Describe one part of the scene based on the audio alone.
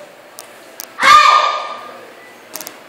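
A young child shouts loudly in a short sharp burst.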